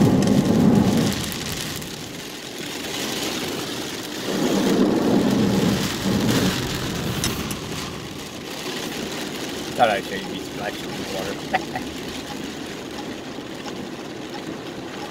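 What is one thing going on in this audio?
Windshield wipers swish back and forth.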